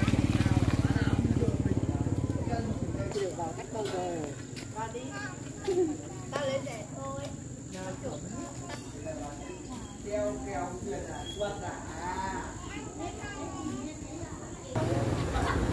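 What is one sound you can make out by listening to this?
A young girl chatters with animation nearby.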